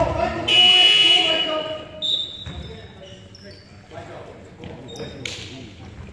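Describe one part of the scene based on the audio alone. Sneakers squeak on a wooden court in an echoing hall.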